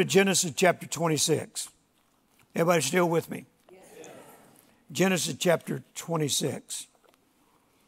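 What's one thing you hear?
An elderly man speaks slowly and deliberately through a microphone.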